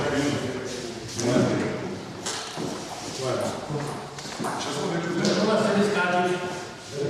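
Young men talk with animation in an echoing room.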